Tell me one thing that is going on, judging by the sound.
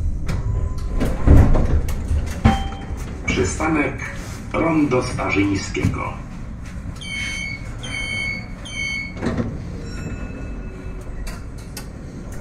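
A tram's motors hum steadily while it stands still.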